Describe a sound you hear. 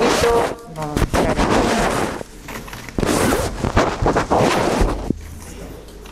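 Paper rustles as a hand rummages in a box.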